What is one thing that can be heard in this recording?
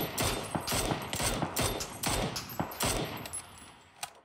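A rifle fires a rapid burst of loud shots.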